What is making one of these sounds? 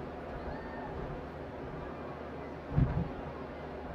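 A crowd cheers nearby.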